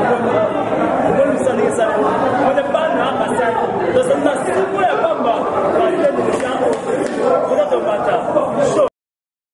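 A woman sings loudly close by.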